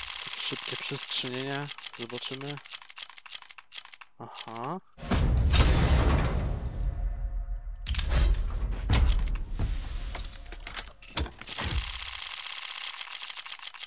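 A spinning game reel ticks rapidly, slowing down.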